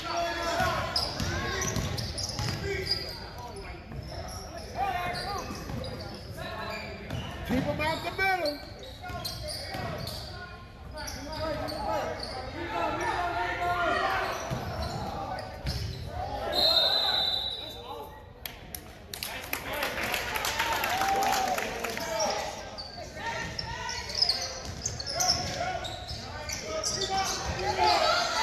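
Sneakers squeak on a hardwood gym floor.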